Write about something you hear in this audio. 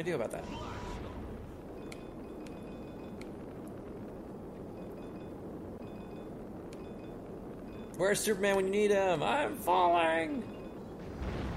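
A rocket roars steadily as it blasts off and flies.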